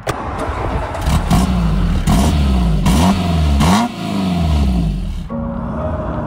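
A car engine idles with a deep burble from the exhaust.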